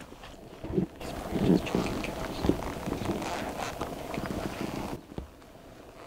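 A middle-aged man speaks quietly and quickly, close by.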